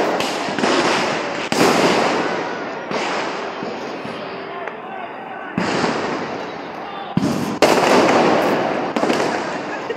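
Fireworks bang loudly nearby, each blast echoing away outdoors.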